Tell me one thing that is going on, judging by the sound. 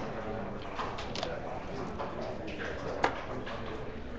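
Plastic game pieces click against a wooden board.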